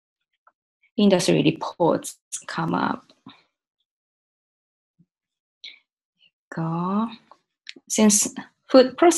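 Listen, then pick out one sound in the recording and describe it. A young woman speaks calmly and close to a microphone, with pauses.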